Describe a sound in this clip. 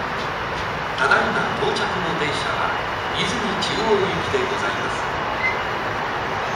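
Train brakes squeal and clank as the train slows.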